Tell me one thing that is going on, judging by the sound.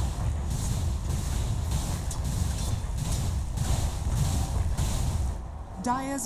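Game magic spell effects whoosh and crackle.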